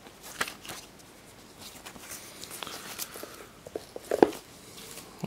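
Card knocks softly against card.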